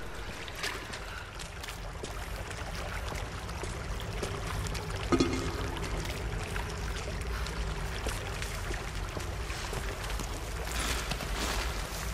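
Hands and boots scrape against rock while climbing.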